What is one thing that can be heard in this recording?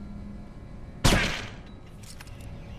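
A gunshot cracks once, ringing briefly.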